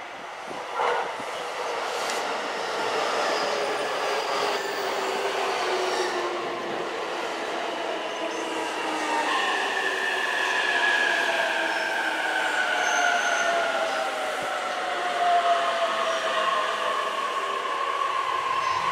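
A train's electric motors whine and slowly fall in pitch.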